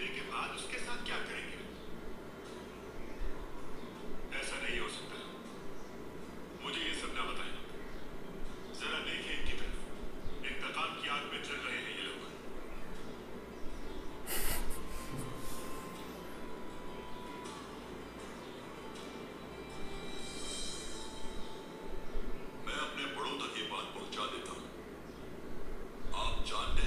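A man speaks gravely, heard through a loudspeaker.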